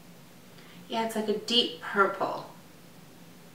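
A woman speaks briefly and calmly, close to a microphone.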